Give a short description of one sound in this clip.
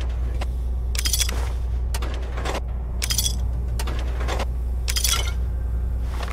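Short rattling pickup sounds come one after another as items are taken.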